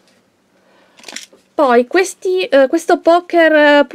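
Plastic packaging crinkles as a hand picks it up.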